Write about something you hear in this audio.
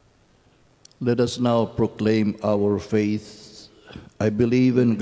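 An elderly man speaks steadily near a microphone.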